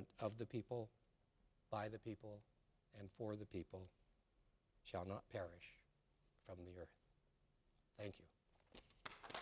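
A man speaks slowly and formally into a microphone in a large hall.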